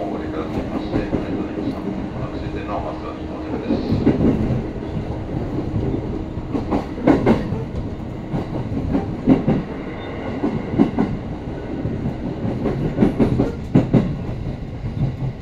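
A train rumbles and rattles steadily along the track.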